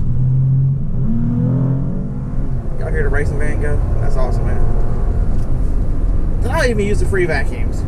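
A car engine hums and rumbles low inside the cabin.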